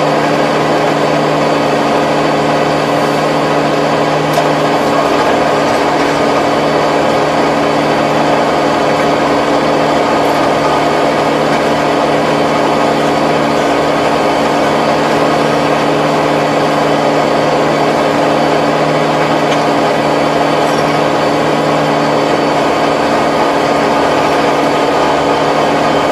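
A rotary tiller churns and rattles through soil.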